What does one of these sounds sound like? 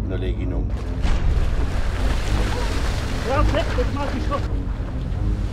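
Water splashes as men run through a stream.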